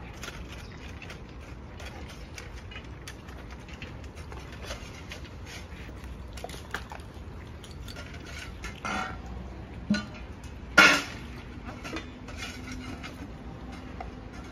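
Dogs lap and slurp from bowls close by.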